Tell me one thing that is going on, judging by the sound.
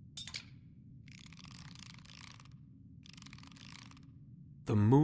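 A small disk scrapes as it is turned by hand.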